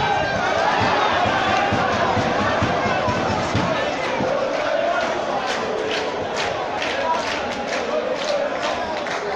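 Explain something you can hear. A crowd of spectators chatters and calls out across an open stadium.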